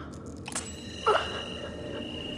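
An ice crystal cracks and snaps off.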